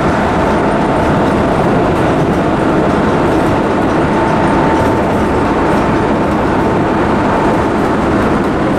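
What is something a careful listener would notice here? Train wheels squeal with a steady high whine.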